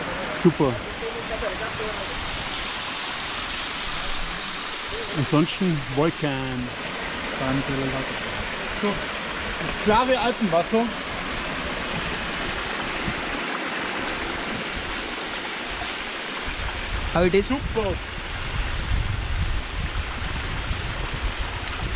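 Water rushes and splashes steadily close by.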